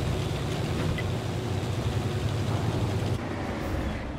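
A tank engine rumbles deeply as the tank drives.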